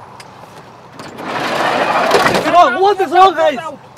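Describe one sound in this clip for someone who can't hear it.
A van's sliding door rolls open.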